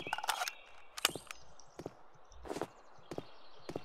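A rifle clicks and rattles as it is raised to aim.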